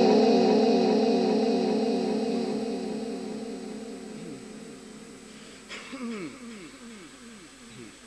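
A man chants a long, drawn-out melodic recitation through a microphone, the held note slowly fading before a new phrase begins.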